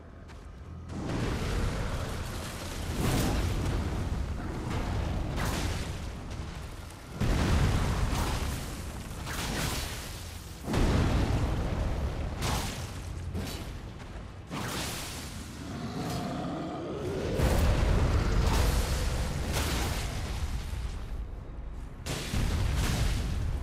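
Swords clash and strike with heavy blows.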